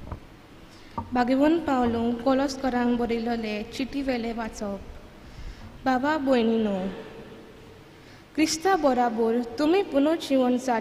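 A young woman reads aloud calmly through a microphone.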